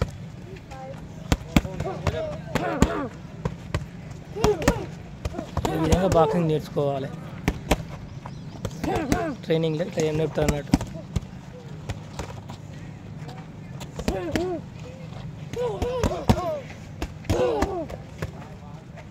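Boxing gloves thud and smack against gloves.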